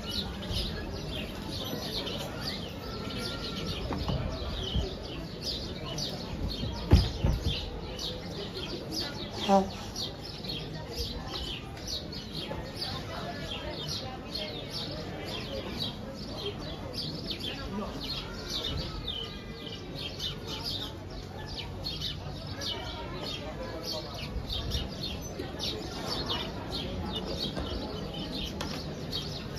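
A crowd of men and women murmurs at a distance outdoors.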